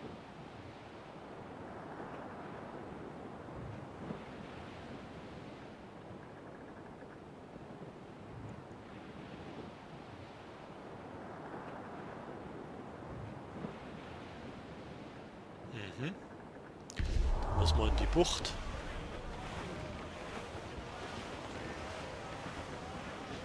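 Waves rush and splash against a sailing ship's hull.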